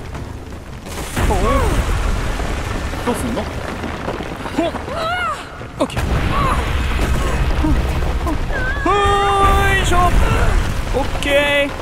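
Rocks crumble and crash down with a deep rumble.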